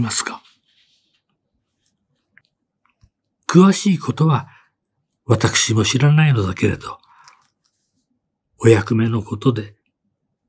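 A man reads out calmly and closely into a microphone, in short phrases with pauses.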